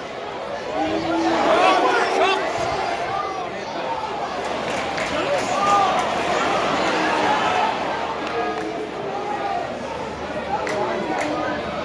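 A large football crowd chants and sings in an open stadium.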